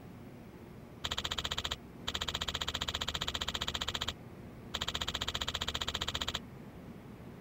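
Rapid electronic blips chatter in bursts as text is typed out.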